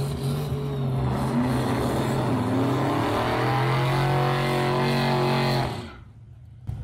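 Tyres screech and squeal during a smoky burnout.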